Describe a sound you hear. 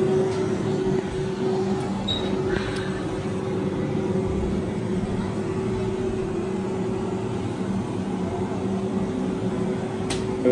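Heavy machinery hums and drones steadily in an enclosed space.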